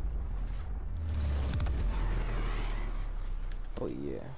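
Lightning crackles and rumbles.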